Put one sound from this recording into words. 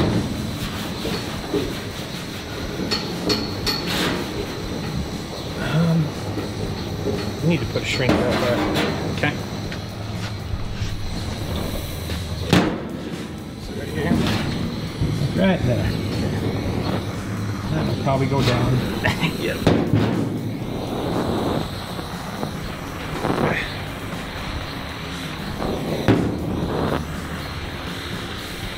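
A gas torch flame hisses and roars steadily.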